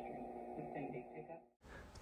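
A dial knob turns with a soft scrape.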